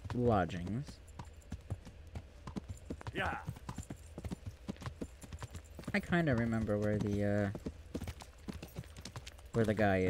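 Horse hooves clop steadily on a dirt road.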